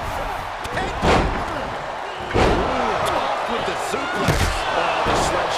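Heavy thuds of bodies slamming onto a wrestling ring.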